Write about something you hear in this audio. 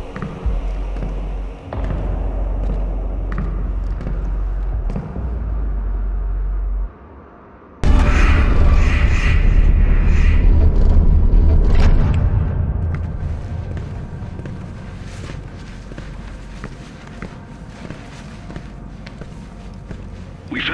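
Heavy footsteps clank on a metal floor.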